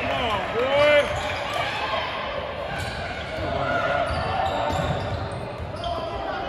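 Spectators murmur in an echoing gym.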